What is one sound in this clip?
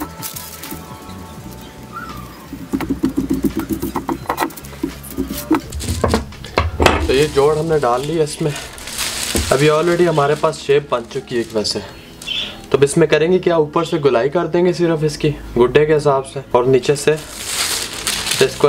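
Thin paper rustles and crinkles as it is handled.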